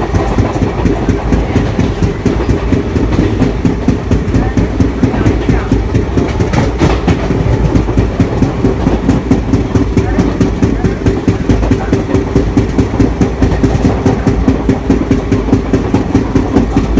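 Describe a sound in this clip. A passenger train rolls along, its wheels clattering in a fast, steady rhythm over the rails.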